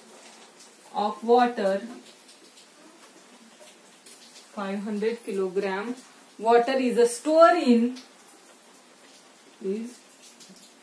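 A young woman speaks calmly and clearly close by, as if explaining.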